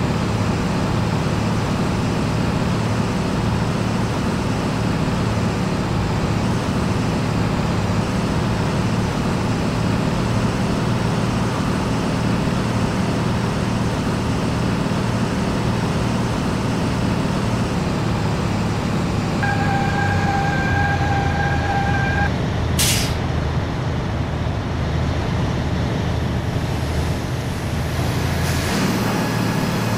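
A heavy truck engine rumbles steadily as the truck drives along.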